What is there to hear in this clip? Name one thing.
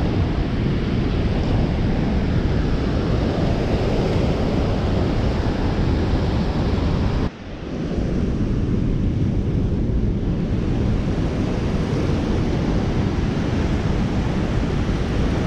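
Fast water rushes and churns loudly nearby.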